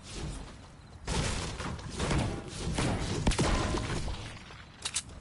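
A pickaxe strikes wood with heavy thuds and crunches.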